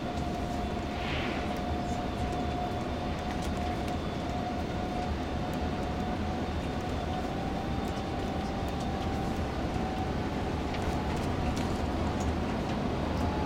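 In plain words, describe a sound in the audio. Tyres roll on the road with a steady rumble.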